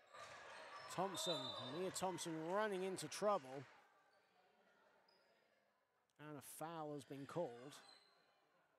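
Young women shout and cheer loudly in an echoing sports hall.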